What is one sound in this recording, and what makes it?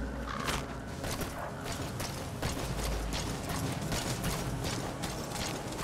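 Footsteps run over dry grass and dirt.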